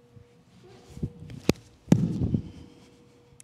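Bare feet thud and slap on a wooden floor as a woman lands a jump.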